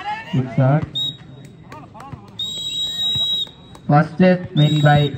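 A referee's whistle blows in short and long blasts.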